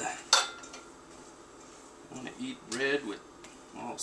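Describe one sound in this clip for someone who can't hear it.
A spoon clinks against a mixing bowl.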